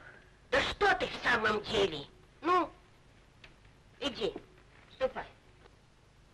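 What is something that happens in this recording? An elderly woman speaks with animation close by.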